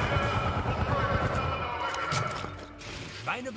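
A metal shutter rattles and rolls open.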